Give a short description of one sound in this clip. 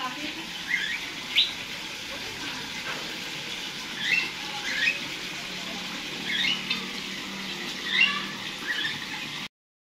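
Birds chirp in short bursts nearby.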